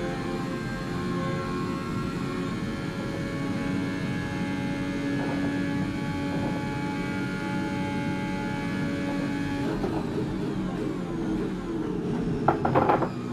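A racing car engine screams at high, steady revs, then drops in pitch as the car slows.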